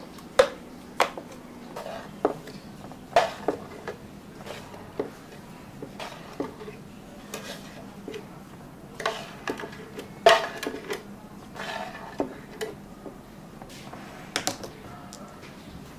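A metal spoon clinks against glasses while stirring.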